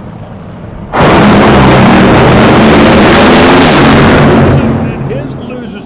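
Two dragsters launch with a deafening, crackling roar that fades as they race away.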